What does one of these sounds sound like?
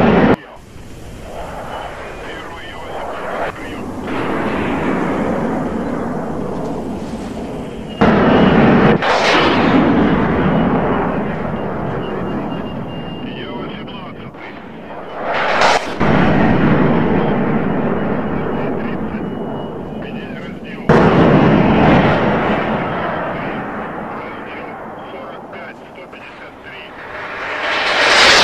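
Jet engines roar loudly overhead, swelling and fading as jets pass by.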